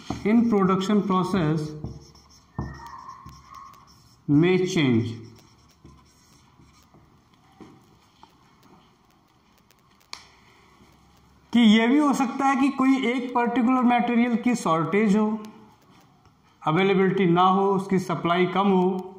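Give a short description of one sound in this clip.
A man lectures in a clear, steady voice close by.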